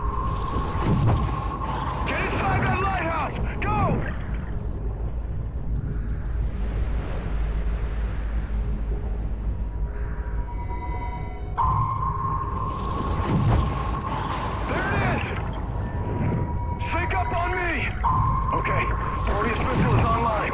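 A deep underwater rumble drones steadily.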